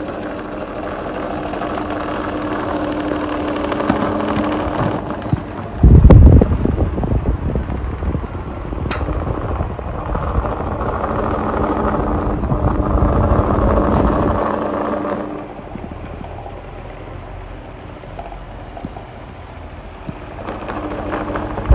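Electric fans hum and whir steadily close by.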